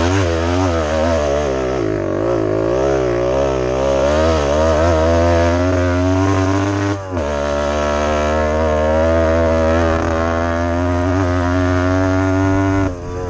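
Tyres crunch over dirt and grass.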